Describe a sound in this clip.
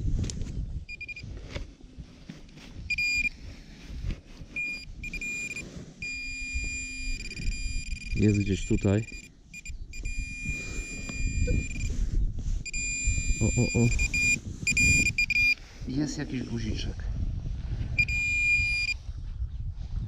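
A metal detector pinpointer beeps in quick, shrill bursts.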